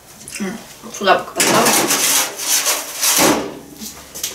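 A metal baking tray scrapes and clatters against an oven.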